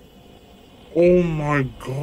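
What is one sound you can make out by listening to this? A young man exclaims loudly into a microphone.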